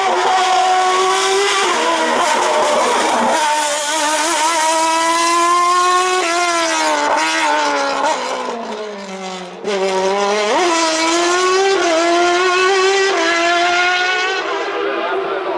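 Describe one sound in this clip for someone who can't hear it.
A racing car engine screams loudly, shifting gears and revving up and down.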